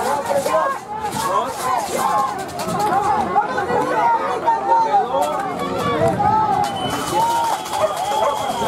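A crowd of spectators shouts and cheers outdoors at a distance.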